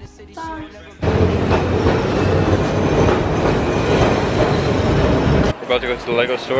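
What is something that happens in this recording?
A tram rumbles loudly past on rails.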